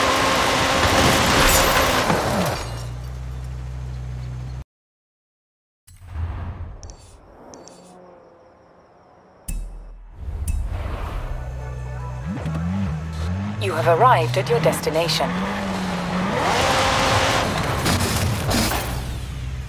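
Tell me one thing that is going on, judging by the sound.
A wooden board smashes and clatters.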